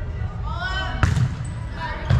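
A volleyball is hit hard with a hand on a serve.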